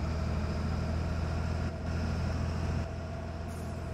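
Bus tyres rumble over a dirt road.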